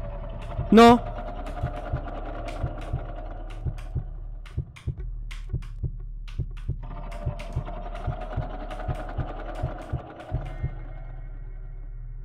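A heartbeat thumps in a steady rhythm.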